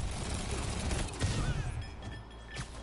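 A laser beam hums and crackles loudly.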